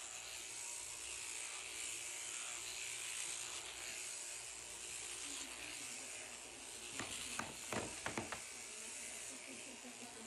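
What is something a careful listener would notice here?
Electric shears buzz steadily, cutting through wool.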